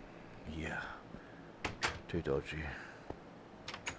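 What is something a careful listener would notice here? A wooden door knocks open and shut.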